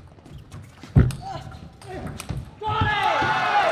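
A ping-pong ball clicks quickly back and forth off paddles and a table.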